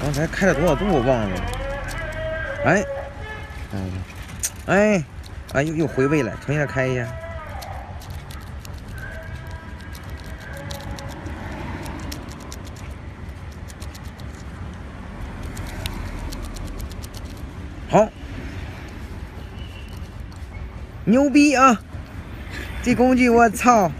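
A metal tool scrapes and clicks against metal.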